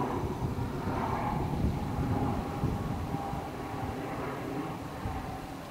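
Wind rumbles and gusts outdoors.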